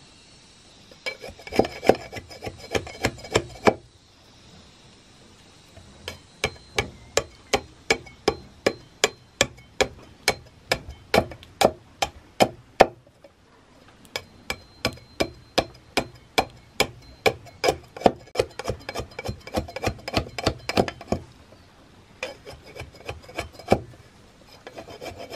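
A blade chops rapidly into wood with sharp, even knocks.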